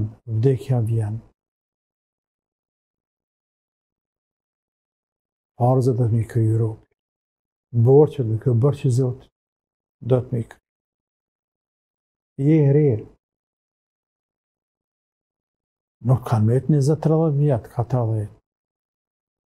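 A middle-aged man speaks calmly into a close microphone, with long pauses.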